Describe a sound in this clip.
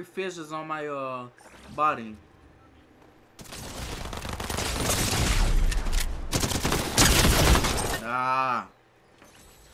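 A young man speaks into a microphone.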